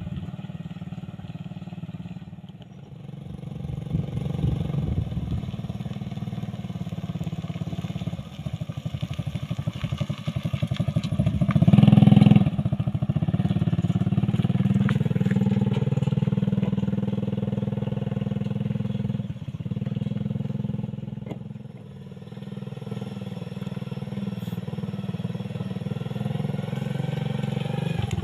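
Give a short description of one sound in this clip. A small motorcycle engine chugs steadily nearby.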